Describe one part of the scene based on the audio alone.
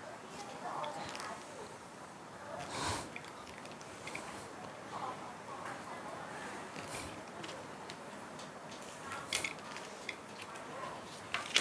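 Chalk scratches along paper in short strokes.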